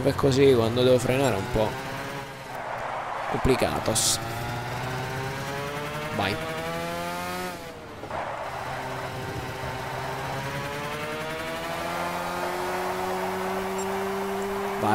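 A kart engine buzzes and whines, rising in pitch as it speeds up and dropping as it slows.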